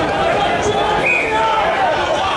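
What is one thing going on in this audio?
A referee's whistle gives a short, sharp blast.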